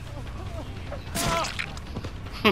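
A heavy blade strikes flesh with a thud.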